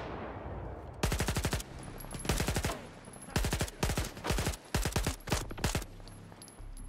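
A rifle fires in rapid bursts, with sharp bangs echoing outdoors.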